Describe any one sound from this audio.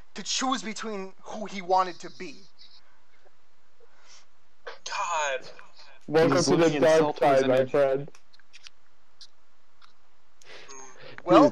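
A young man talks casually and laughs into a close microphone.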